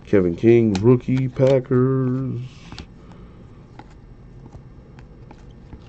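Trading cards softly rustle and click as they are flipped by hand.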